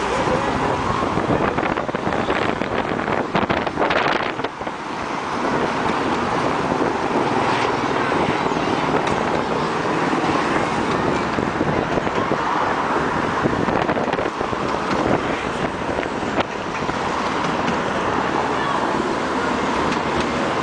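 A motorcycle engine hums as it passes.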